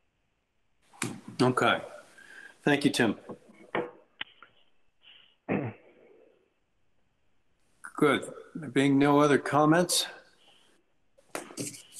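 An older man speaks calmly and haltingly over an online call.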